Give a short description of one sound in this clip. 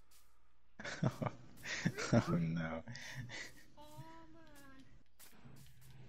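Footsteps thud softly on grass.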